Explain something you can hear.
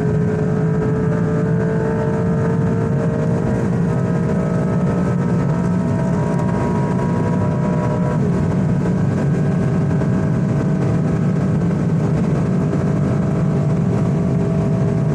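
A sports car engine roars steadily at high speed, its pitch slowly rising, then dropping briefly at a gear change.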